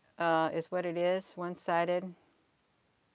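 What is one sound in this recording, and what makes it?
A middle-aged woman speaks close to a microphone, with animation.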